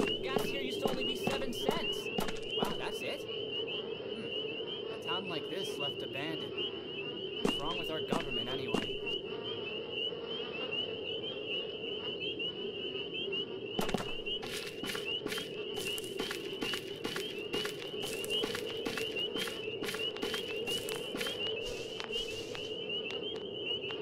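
Footsteps tread quickly on hard ground.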